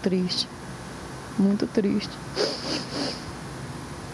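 A middle-aged woman speaks in a tearful, breaking voice close to a microphone.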